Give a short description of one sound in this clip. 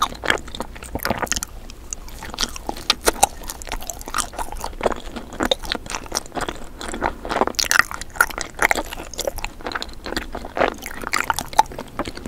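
Hard candy crunches and clicks between teeth up close.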